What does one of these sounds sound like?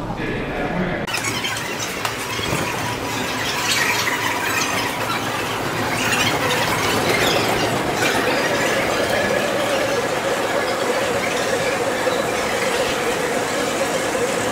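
A crowd of people walks and murmurs in a large echoing hall.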